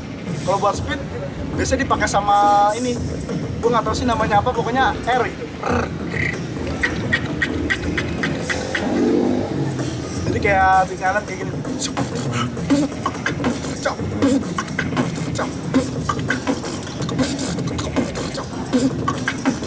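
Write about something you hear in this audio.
A young man beatboxes close to a microphone, with quick clicks, thumps and hums.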